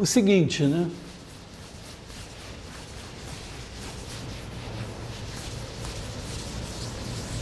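A felt eraser rubs steadily across a chalkboard.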